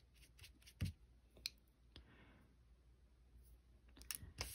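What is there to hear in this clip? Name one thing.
Small plastic tools click and clatter.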